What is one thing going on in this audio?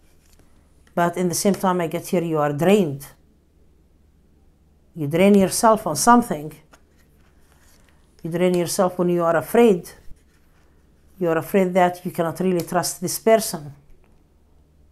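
A middle-aged woman speaks calmly and close up into a microphone, in short phrases with pauses.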